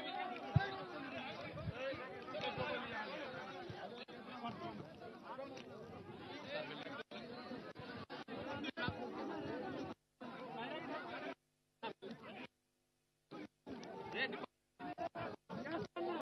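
A crowd of men talks and shouts excitedly close by.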